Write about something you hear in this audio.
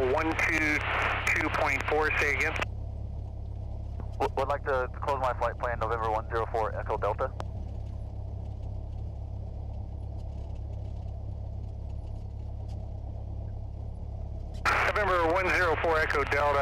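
A small plane's propeller engine drones steadily.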